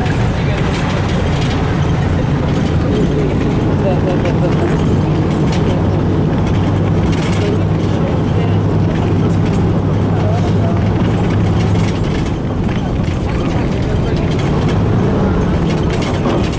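A bus engine hums steadily from inside the bus.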